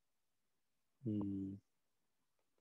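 A man briefly says a word through an online call.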